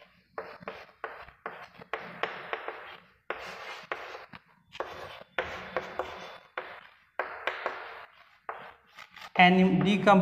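Chalk taps and scrapes on a blackboard in short bursts.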